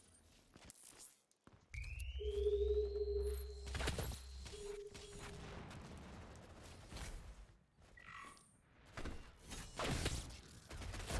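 A gun fires in loud, sharp blasts.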